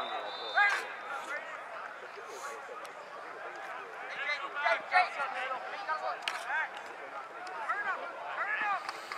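Young players and spectators shout and call out across an open field outdoors.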